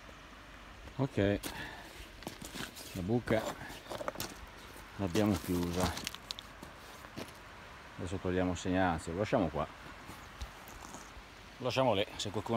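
A middle-aged man talks calmly close by, in short bursts.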